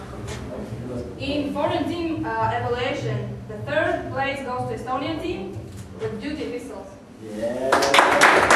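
A woman reads out names in a calm, clear voice.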